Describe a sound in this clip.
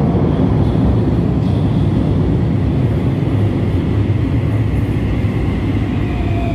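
A metro train rumbles loudly into an echoing underground station.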